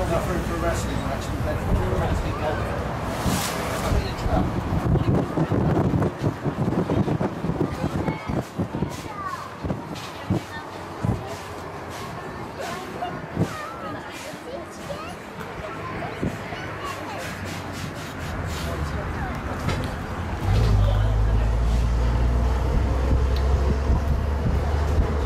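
A bus body rattles and creaks on the road.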